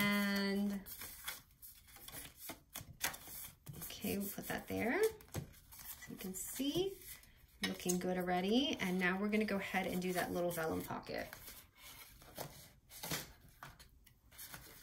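Paper cards rustle and flap as they are handled.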